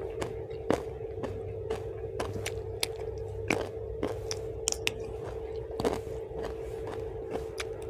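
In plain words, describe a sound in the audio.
A young woman chews food loudly and wetly, close to a microphone.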